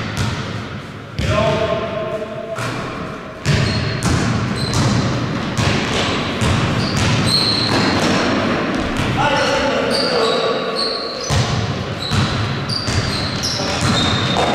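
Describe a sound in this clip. A basketball bounces on a hard floor, echoing.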